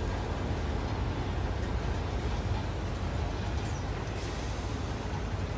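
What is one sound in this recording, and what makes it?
Footsteps shuffle softly on a metal walkway.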